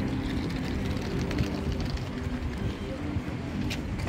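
Footsteps tap on stone paving nearby.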